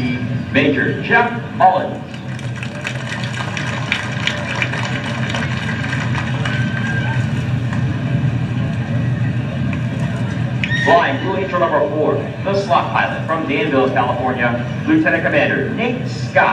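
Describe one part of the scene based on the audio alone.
A jet engine idles with a steady roar and whine.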